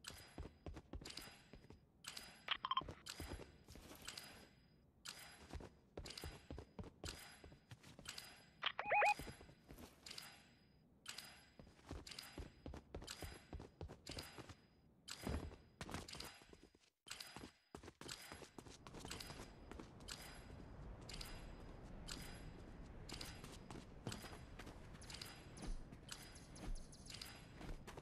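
Footsteps patter quickly and steadily on a hard floor.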